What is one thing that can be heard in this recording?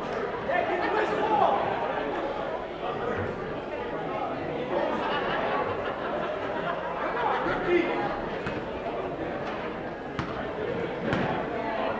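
A crowd chatters steadily in a large echoing gym.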